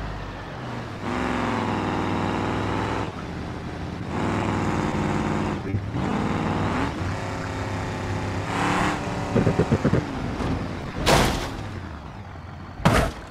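A car engine revs loudly.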